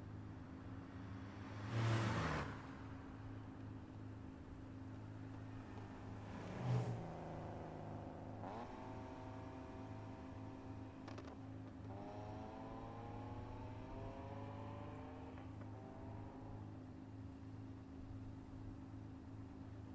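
A car engine idles with a steady low rumble.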